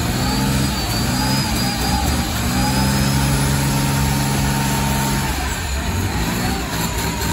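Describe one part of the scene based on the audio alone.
A large diesel engine roars loudly at high revs.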